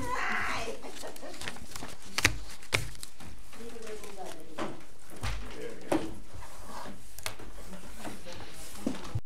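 A man speaks calmly and quietly in a large room.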